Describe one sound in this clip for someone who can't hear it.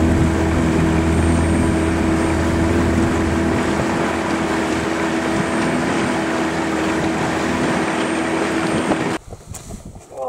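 A boat motor drones steadily.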